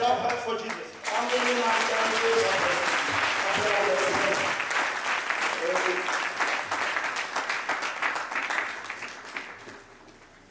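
A large crowd claps loudly.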